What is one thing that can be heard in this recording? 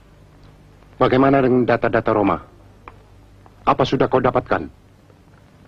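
Another middle-aged man answers into a telephone handset.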